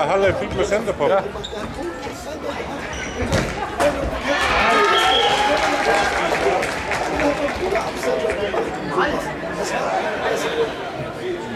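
A ball thuds as it is kicked on a wooden floor.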